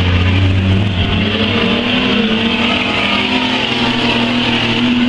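A race car engine revs up and changes pitch as it passes close by.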